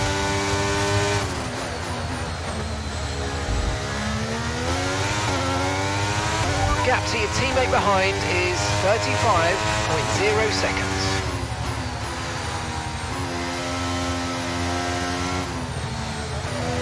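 A racing car engine screams loudly, rising and falling in pitch as the car shifts gears.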